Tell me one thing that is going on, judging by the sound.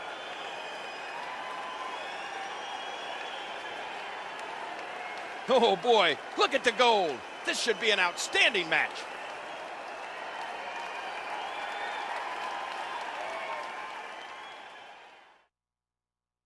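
A large crowd cheers steadily in a big arena.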